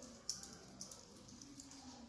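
A small metal clipper clicks softly.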